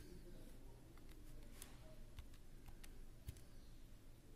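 Calculator buttons click as they are pressed.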